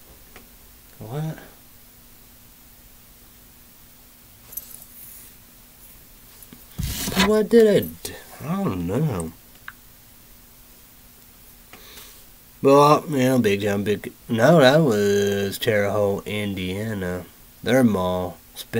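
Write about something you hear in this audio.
A young man talks calmly and close by, with pauses.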